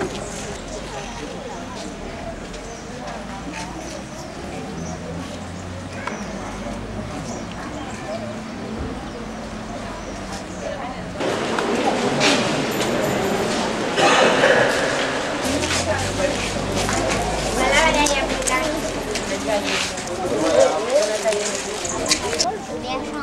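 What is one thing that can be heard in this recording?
A crowd of adults and children chatters nearby outdoors.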